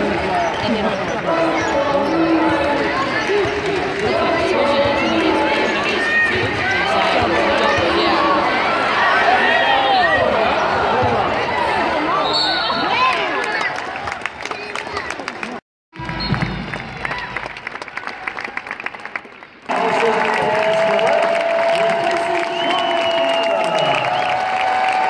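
A large crowd cheers and chatters in a big echoing arena.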